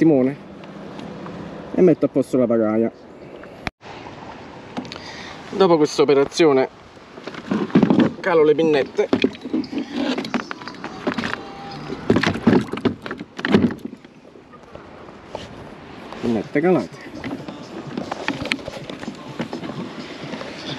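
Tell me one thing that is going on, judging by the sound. A man talks close by, calmly and with pauses.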